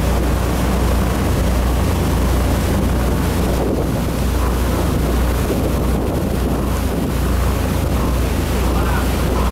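Churning water rushes and splashes in the boat's wake.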